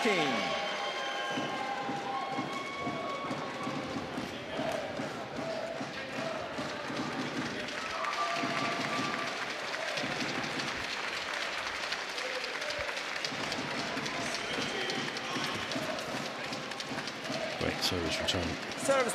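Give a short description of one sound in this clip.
A racket hits a shuttlecock with sharp pops.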